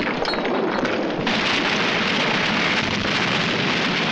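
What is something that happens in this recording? Molten lava bubbles and splatters.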